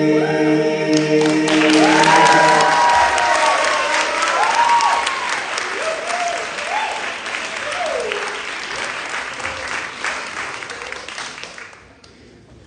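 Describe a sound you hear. An audience cheers and applauds loudly in a large hall.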